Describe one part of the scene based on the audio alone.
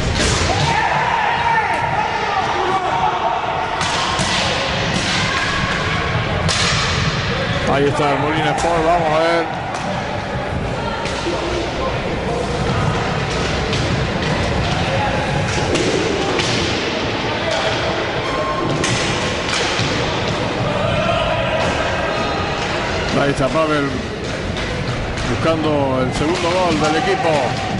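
A crowd cheers and shouts in a large echoing hall.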